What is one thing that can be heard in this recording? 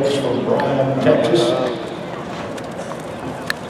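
A horse gallops on soft dirt.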